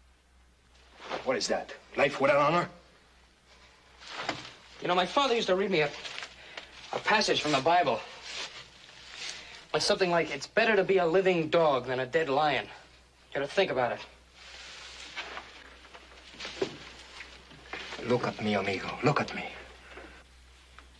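A second man answers, speaking with an accent and growing agitated.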